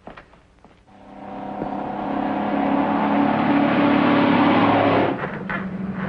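A truck engine rumbles and grows louder as it approaches.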